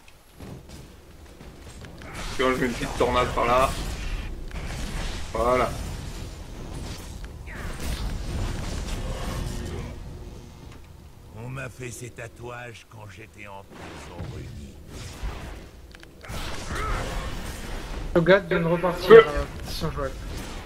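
Magic blasts and sword hits crackle in a fast game battle.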